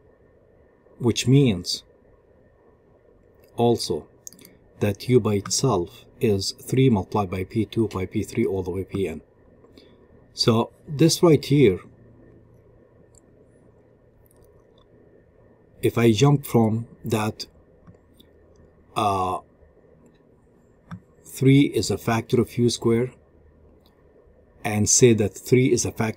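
A middle-aged man speaks calmly and steadily into a close microphone, in short phrases with pauses.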